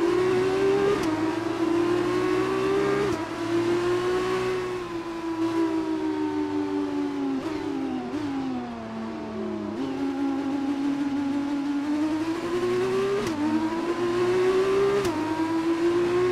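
A racing car engine screams at high revs, shifting up and down through the gears.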